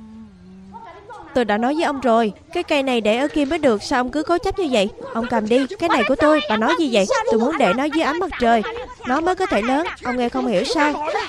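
A young woman shouts angrily.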